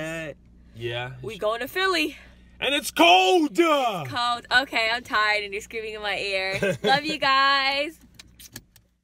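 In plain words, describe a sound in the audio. A young woman sings playfully close by.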